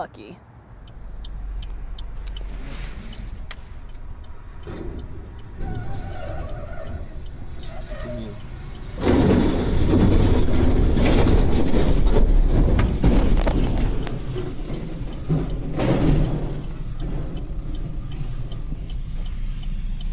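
Wind roars loudly against a moving car.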